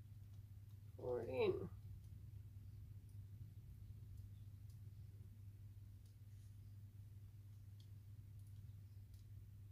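Thick liquid pours and trickles softly.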